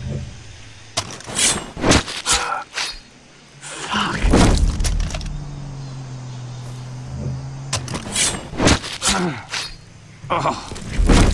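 A knife slices wetly through flesh.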